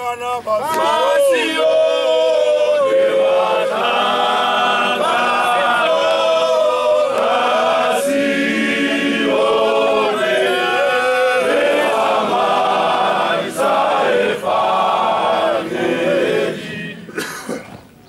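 A large group of men sing together in chorus outdoors.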